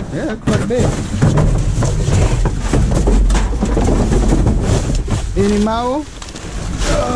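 Cardboard boxes scrape and crumple close by.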